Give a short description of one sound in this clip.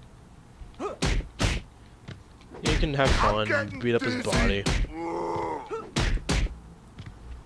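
Punches land with sharp, heavy thuds.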